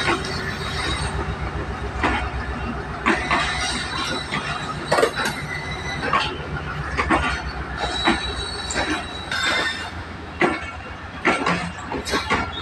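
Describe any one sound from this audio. A passenger train rolls past close by, its wheels clattering over rail joints.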